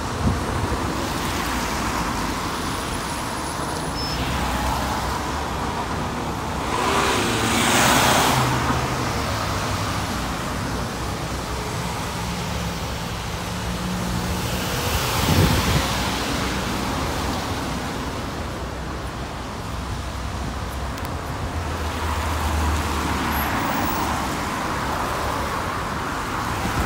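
Traffic hums steadily on a nearby wet road.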